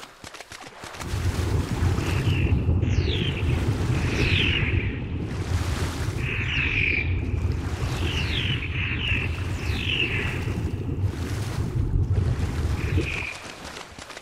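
A low underwater rumble swells and holds steady.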